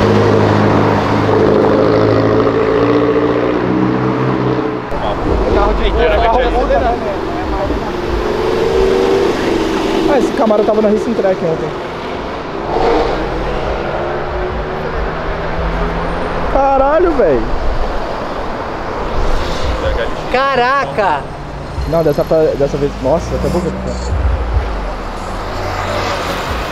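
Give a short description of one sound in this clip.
Car engines rumble and rev as cars drive past.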